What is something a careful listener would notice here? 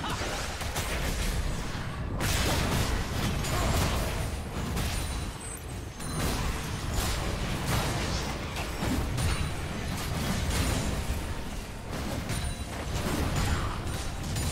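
Spell effects whoosh and crackle in a fast game fight.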